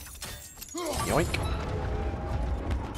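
Ice shatters and crumbles with a loud rumble.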